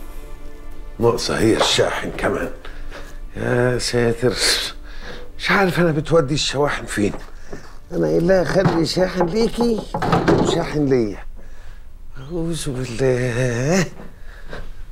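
A middle-aged man speaks quietly to himself.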